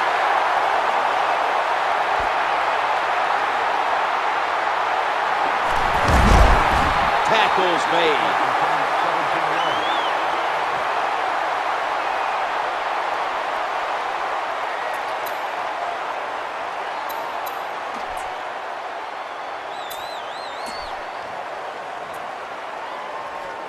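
A stadium crowd roars steadily and slowly fades.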